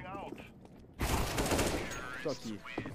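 A rifle fires in a quick burst.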